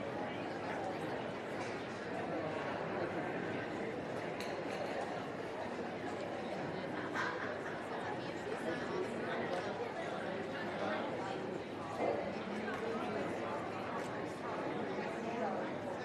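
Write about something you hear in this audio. A crowd murmurs and chatters steadily in a large indoor hall.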